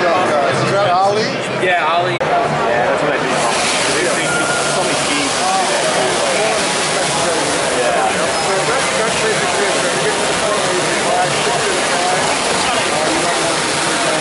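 A crowd chatters in a large, busy hall.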